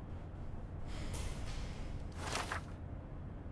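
Paper rustles as a notebook page is turned.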